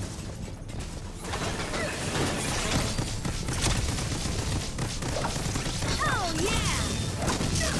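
A turret fires rapid blasts.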